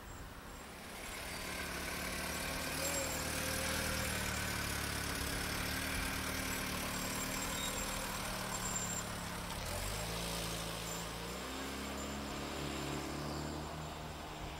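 A car engine hums nearby, then revs up as the car pulls away.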